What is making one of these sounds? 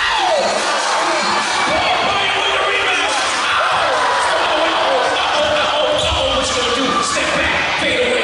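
A basketball bounces on the hardwood floor.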